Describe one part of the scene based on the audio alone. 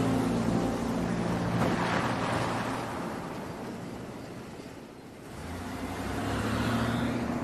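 A car engine hums as the car drives past and away.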